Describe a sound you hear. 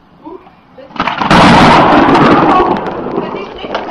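Thunder cracks loudly and rumbles.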